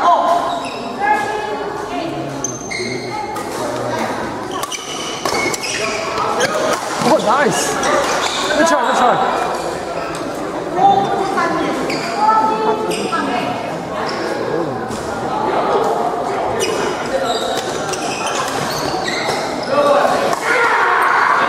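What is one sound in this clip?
Sports shoes squeak on a gym floor.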